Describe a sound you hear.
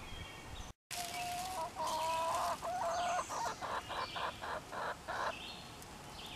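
Hens cluck softly close by.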